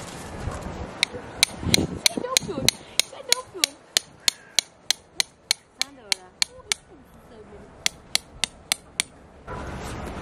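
A hammer taps a tent peg into the ground in quick, steady blows.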